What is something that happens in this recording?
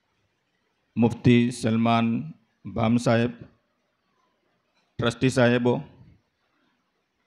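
An elderly man speaks slowly and loudly into a microphone, heard through a loudspeaker in an echoing room.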